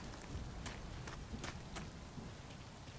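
Footsteps walk slowly across hard ground.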